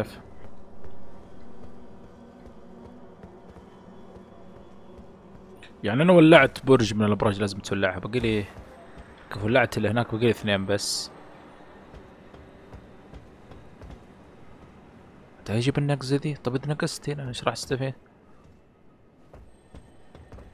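Footsteps tap lightly on roof tiles.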